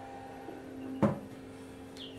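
A hand knocks once against an incubator.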